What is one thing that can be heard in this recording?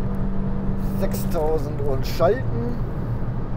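The car's engine pitch sweeps as the driver changes gear.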